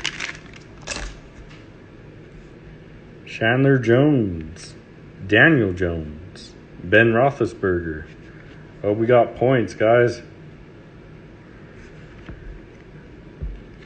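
Trading cards rustle softly as hands flip through them.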